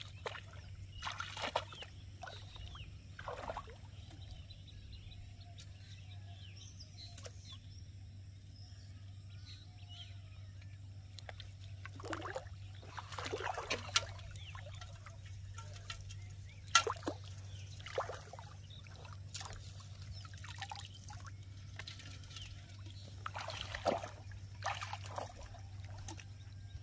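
Water splashes around wading feet.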